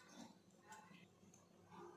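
Wet fish pieces squelch as a hand squeezes them in a metal bowl.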